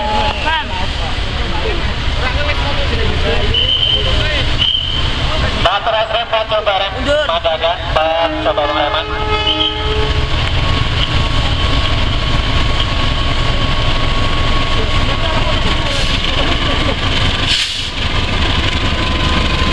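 A diesel locomotive engine rumbles steadily as it approaches.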